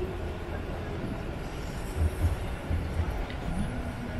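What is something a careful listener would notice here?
A train rumbles past on an elevated track nearby.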